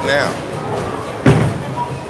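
A bowling ball thuds onto a wooden lane and rolls.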